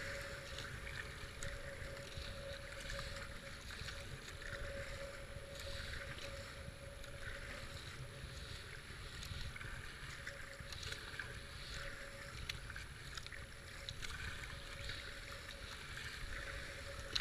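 Fast floodwater rushes and churns steadily close by.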